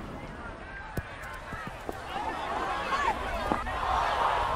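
A golf ball thuds and bounces on short grass.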